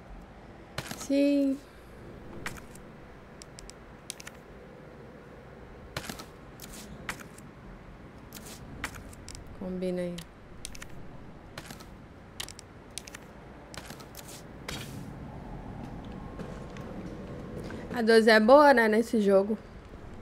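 A young woman speaks briefly and casually through a close microphone.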